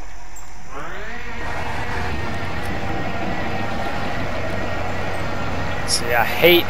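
A truck engine revs up and roars as the truck drives off.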